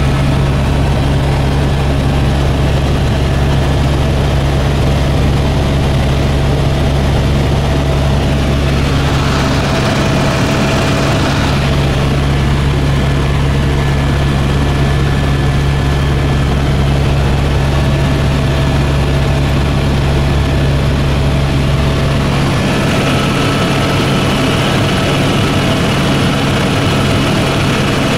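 A helicopter engine and rotor drone loudly and steadily from inside the cabin.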